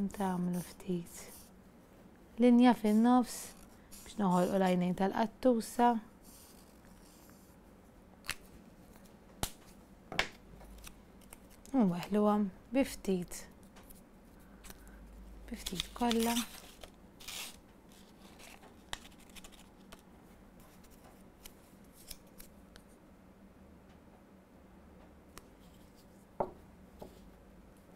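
Small objects click and tap on a table.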